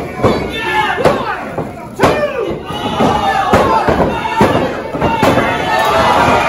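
Bodies thud on a wrestling ring mat.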